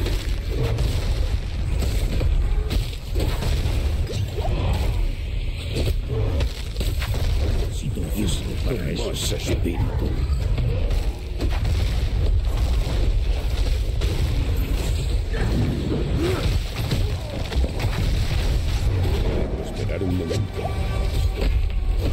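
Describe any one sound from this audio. Game fighting sounds clash and boom without a break.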